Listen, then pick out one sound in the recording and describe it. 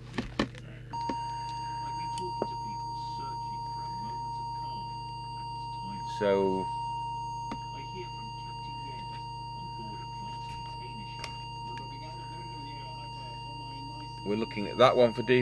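A steady high electronic tone sounds from a small device.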